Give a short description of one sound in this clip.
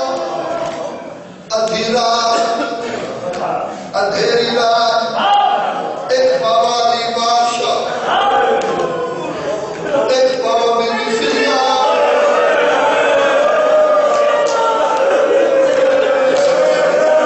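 A man recites loudly and passionately into a microphone, heard through loudspeakers in an echoing space.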